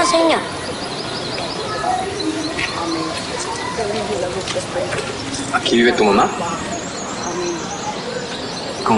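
A man speaks softly and gently to a child nearby.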